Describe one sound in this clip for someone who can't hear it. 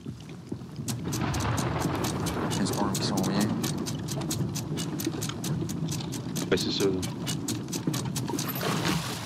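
An anchor winch ratchets rapidly as it turns.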